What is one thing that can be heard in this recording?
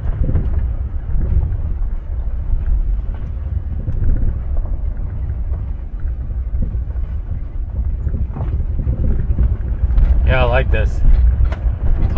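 A vehicle's engine rumbles low and steady.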